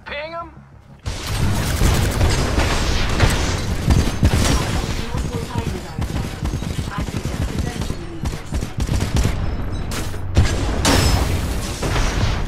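Heavy gunfire rattles rapidly.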